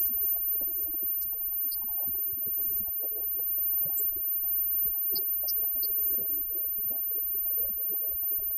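Electric guitars play loudly in a live band.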